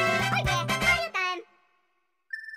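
A short, cheerful video game victory tune plays.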